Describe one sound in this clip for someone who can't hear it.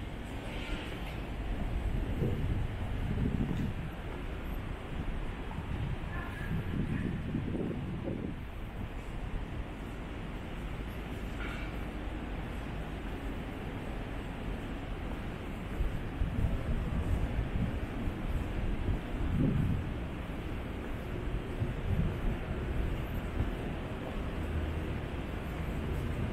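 Wind gusts outdoors, rumbling low.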